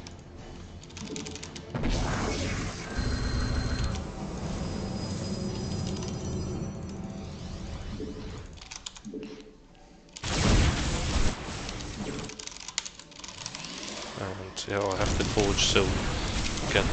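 Electronic game sound effects blip, whoosh and chime.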